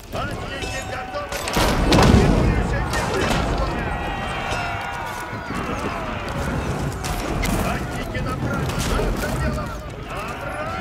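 Soldiers shout and cry out in battle.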